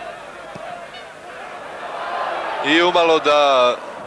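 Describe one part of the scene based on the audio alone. A crowd roars in a large stadium.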